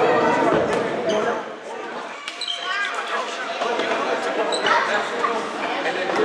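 Young men chatter and call out in a large echoing hall.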